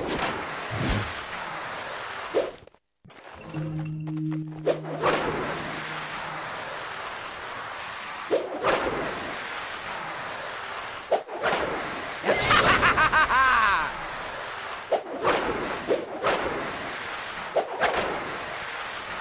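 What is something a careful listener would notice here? A figure slides along a rail with a steady grinding whoosh.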